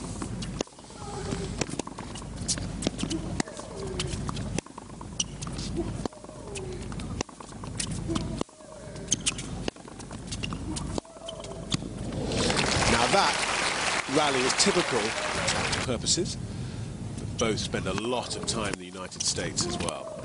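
Tennis balls are struck sharply by rackets in a rally.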